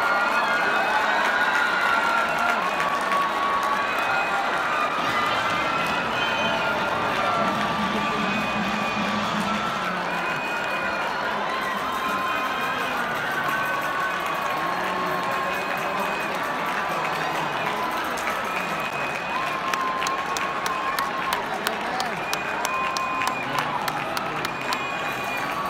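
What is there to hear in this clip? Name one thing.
A large crowd cheers and chatters in a vast echoing stadium.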